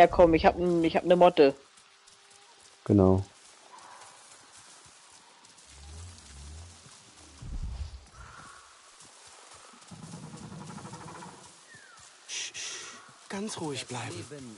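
Footsteps rustle through dense undergrowth.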